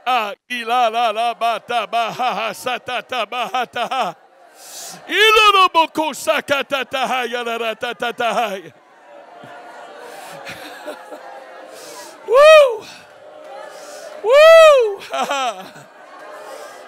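An elderly man shouts with fervour through a microphone and loudspeakers in a large echoing hall.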